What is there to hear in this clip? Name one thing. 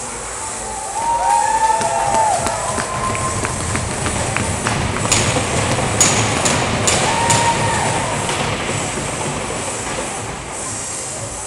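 A crowd of spectators cheers and claps in a large echoing rink.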